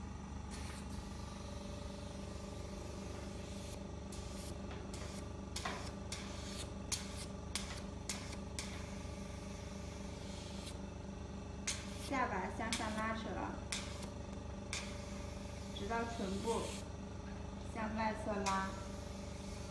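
A skin care machine hums steadily.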